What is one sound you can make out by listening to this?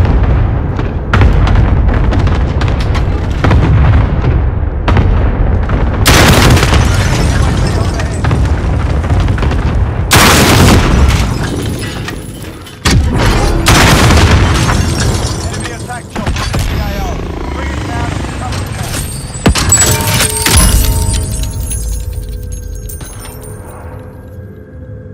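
Gunfire rings out in rapid bursts, echoing loudly.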